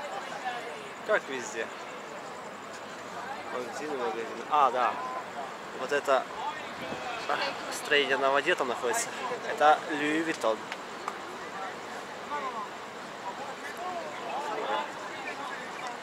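Men and women chat casually nearby in the open air.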